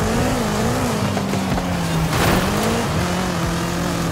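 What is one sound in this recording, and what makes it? A car exhaust pops and crackles.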